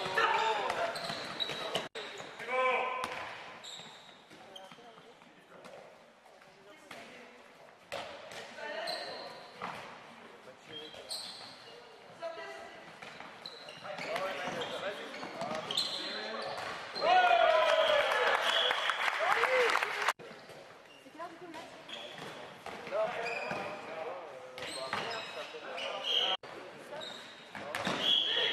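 Men shout to each other across a large echoing hall.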